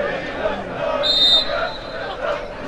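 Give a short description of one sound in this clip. A referee's whistle blows sharply across the pitch.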